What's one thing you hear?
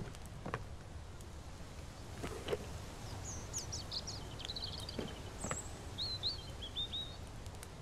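A wooden drawer slides open and shut.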